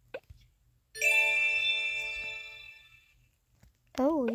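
A bright cash register chime rings and slowly fades.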